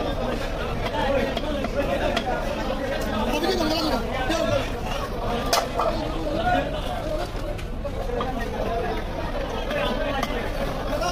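A cleaver chops through fish onto a wooden block.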